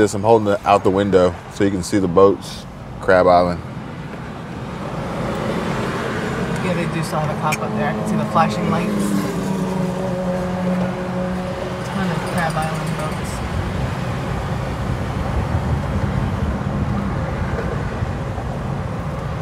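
A car engine hums steadily as tyres roll along a highway.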